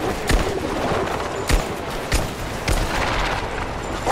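Pistol shots ring out one after another.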